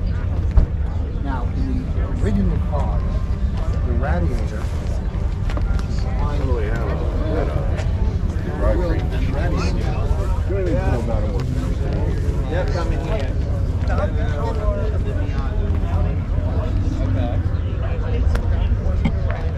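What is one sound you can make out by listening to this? Men and women talk nearby, their voices coming and going.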